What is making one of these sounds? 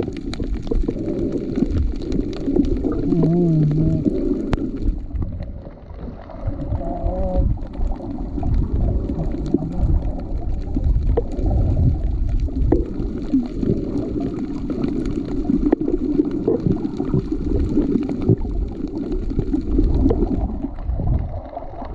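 Water swishes and rumbles with a dull, muffled underwater sound.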